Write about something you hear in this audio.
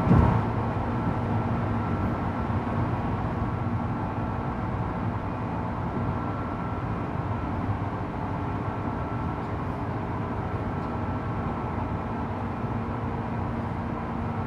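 A train car rumbles and hums steadily as it runs along the track.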